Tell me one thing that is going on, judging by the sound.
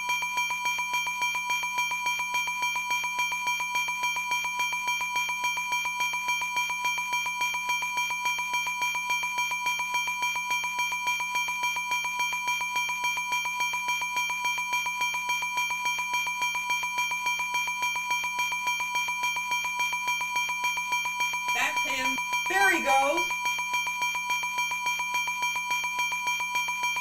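Electronic game music plays steadily with a fast, even beat.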